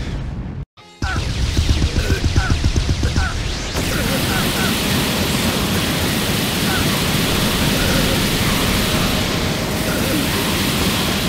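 A roaring burst of energy rumbles loudly.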